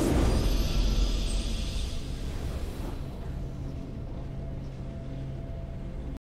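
A triumphant musical fanfare plays.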